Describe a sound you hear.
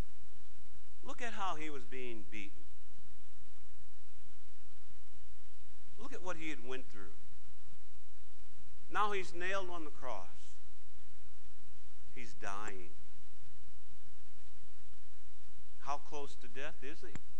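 A middle-aged man speaks through a clip-on microphone in short, emphatic phrases with long pauses.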